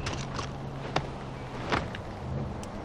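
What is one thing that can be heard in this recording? A metal hook clanks as it catches.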